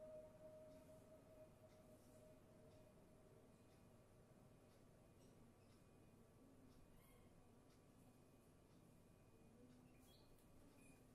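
A plastic wristband taps and clicks faintly as hands handle it.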